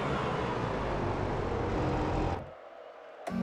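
A motorcycle engine roars at high revs.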